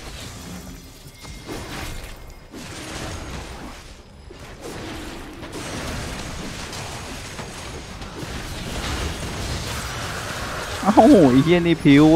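Game sound effects of spells and blasts crackle and whoosh.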